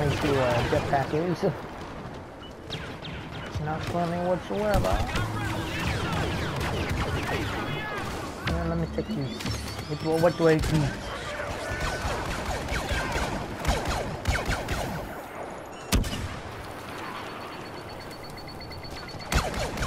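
Blaster shots crack and zap in quick bursts.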